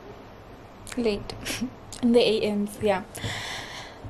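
A young woman speaks close by in a tired, drawn-out voice.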